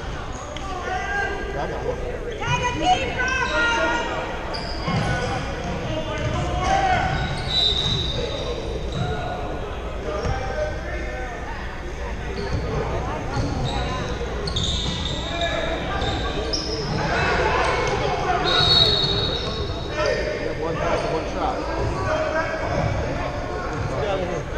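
Many voices chatter and echo through a large hall.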